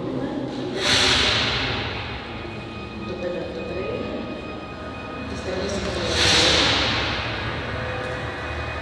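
A loud rushing sound swells through loudspeakers and slowly fades.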